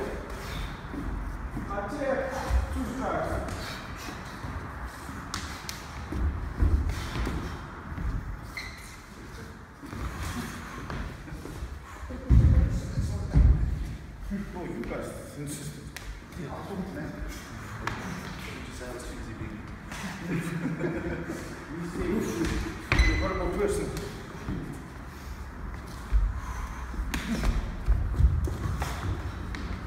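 Men talk quietly in an echoing hall.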